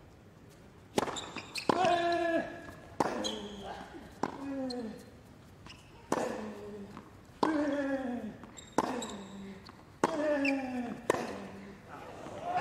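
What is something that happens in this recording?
A tennis player grunts with each shot.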